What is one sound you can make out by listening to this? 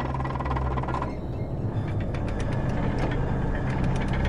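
Heavy metal gears turn and clank.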